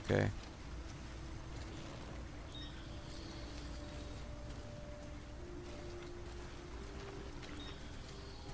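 Footsteps crunch softly on grass and gravel.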